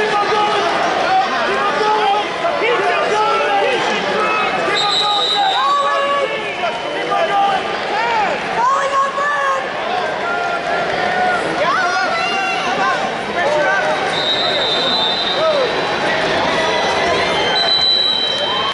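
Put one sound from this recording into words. A crowd of people chatters and calls out across a large echoing hall.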